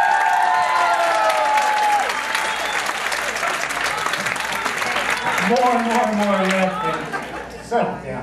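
An audience claps and cheers in a large room.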